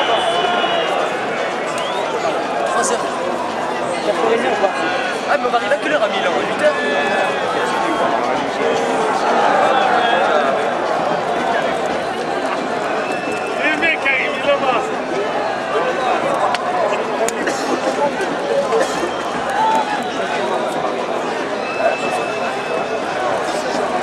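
Nearby spectators talk and shout close by.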